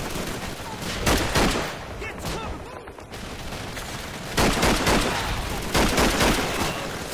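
A rifle fires loud gunshots.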